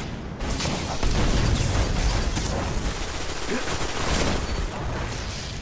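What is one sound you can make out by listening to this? Energy blasts crackle and explode nearby.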